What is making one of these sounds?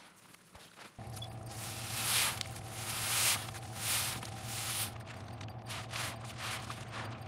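Water drips and splashes from a squeezed sponge.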